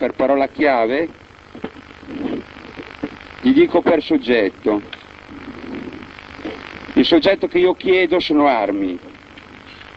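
A man speaks into a microphone with animation, in bursts.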